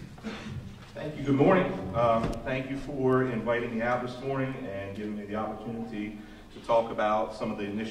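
A man speaks calmly through a microphone and loudspeaker.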